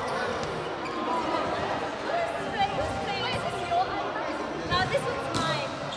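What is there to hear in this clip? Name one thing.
Sneakers squeak on the hard court floor.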